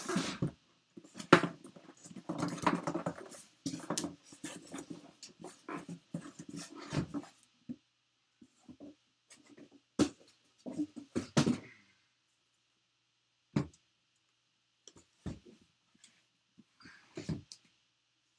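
A box knocks and thumps against a table.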